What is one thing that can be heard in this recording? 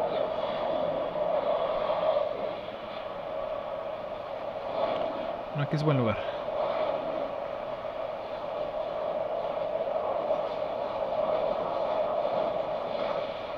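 Wind rushes steadily during a glide through the air.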